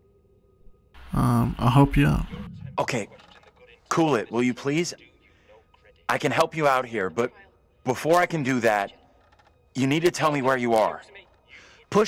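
A young man speaks tensely into a phone, close by.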